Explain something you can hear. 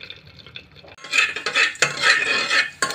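A spoon scrapes and stirs inside a metal pot.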